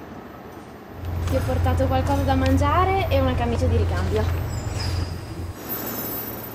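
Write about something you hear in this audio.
A tram motor hums low as a tram rolls past.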